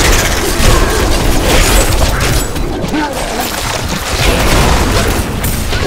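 Weapons clash and magic blasts crackle in a fierce fight.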